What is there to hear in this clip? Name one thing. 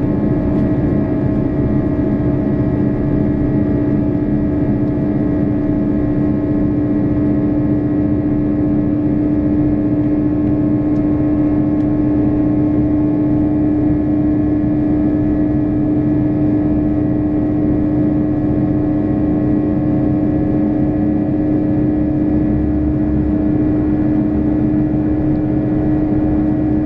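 A train rumbles along the tracks with a steady, droning hum.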